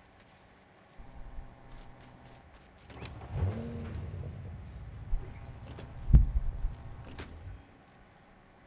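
A vehicle engine starts up and rumbles with low revving.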